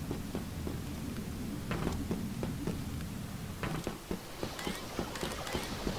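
Footsteps tread quickly on a hard floor.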